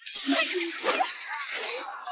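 A sword swishes through the air with a loud whoosh.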